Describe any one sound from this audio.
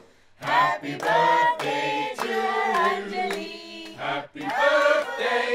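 A group of people clap their hands in rhythm.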